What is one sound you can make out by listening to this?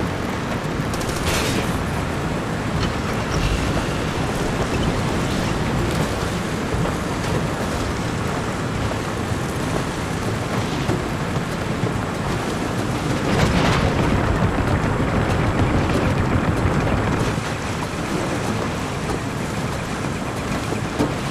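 Tyres crunch and rattle over gravel and dirt.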